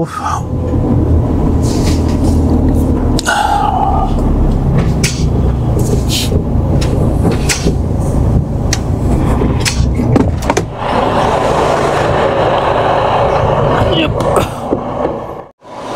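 A truck engine rumbles steadily inside the cab.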